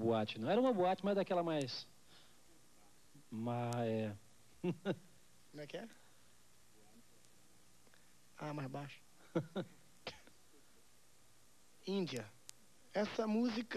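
A man sings into a microphone in short, drawn-out phrases with pauses between them.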